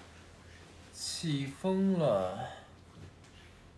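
A young man speaks briefly and expressively close to a microphone.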